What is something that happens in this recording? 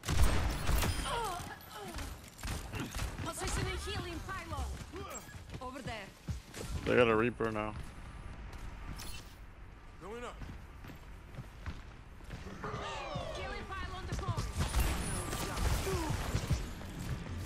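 A revolver fires sharp shots in quick bursts.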